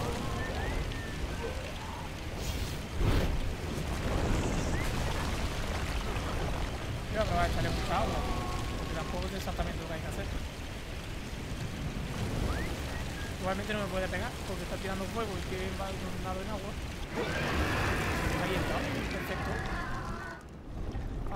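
Fiery blasts roar and crackle loudly.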